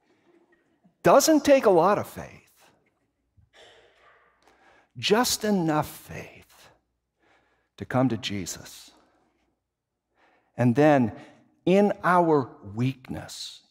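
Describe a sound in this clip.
An older man speaks calmly through a microphone in a large echoing hall, with pauses between phrases.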